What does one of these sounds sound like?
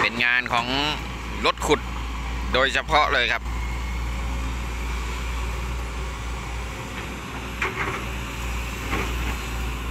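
An excavator bucket digs through wet mud.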